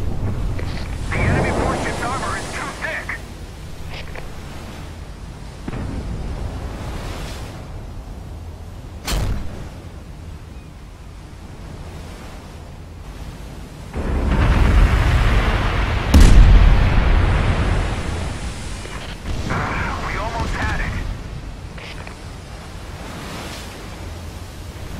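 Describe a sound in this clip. Waves wash steadily against a moving ship's hull.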